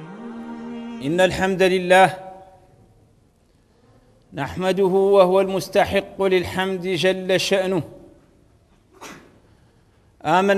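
A middle-aged man preaches forcefully into a microphone, in bursts with pauses.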